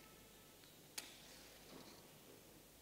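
A match strikes and flares.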